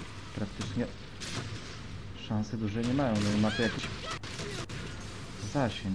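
A loud blast booms.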